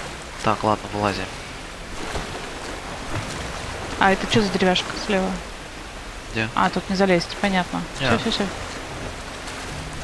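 Water rushes and splashes around someone wading through a river.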